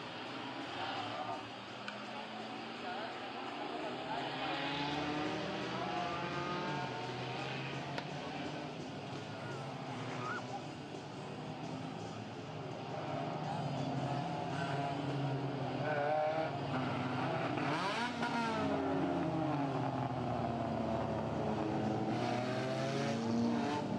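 Race car engines roar and whine as cars speed past outdoors.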